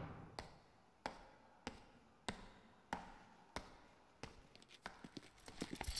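Footsteps of heeled boots click steadily on a hard floor, drawing closer.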